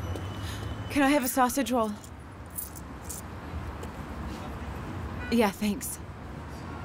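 A young woman calls out briefly, close by.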